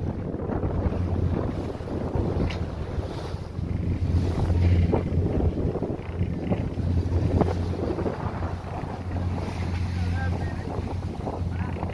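Choppy water splashes against a moving boat.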